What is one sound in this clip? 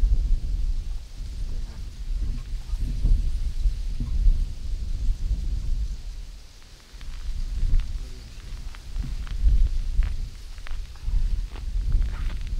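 Wind buffets outdoors with a low rumble.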